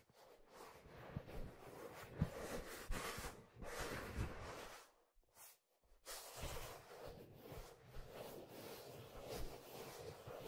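Fingers rub and scratch on leather close to a microphone.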